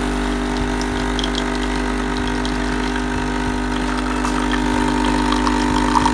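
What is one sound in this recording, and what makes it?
Coffee trickles and splashes into a cup.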